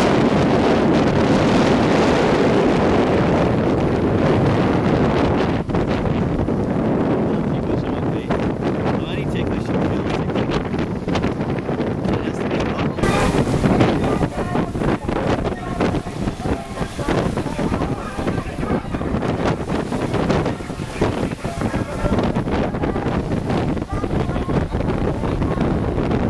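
Wind roars steadily across the microphone outdoors.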